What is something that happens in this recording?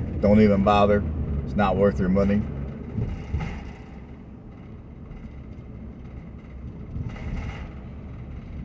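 A car engine hums low as a vehicle rolls slowly along a street.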